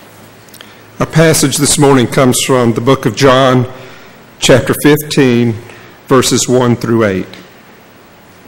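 A middle-aged man reads out calmly through a microphone in a large echoing hall.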